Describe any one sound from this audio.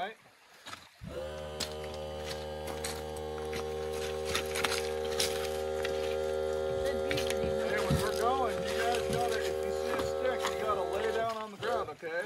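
An outboard motor idles with a steady hum.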